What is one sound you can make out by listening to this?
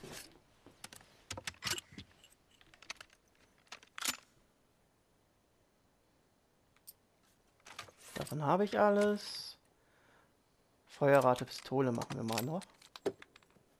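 Metal parts of a gun click and clack as it is handled.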